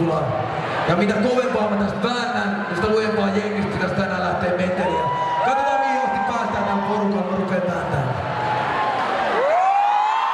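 A young man raps energetically into a microphone over loud loudspeakers.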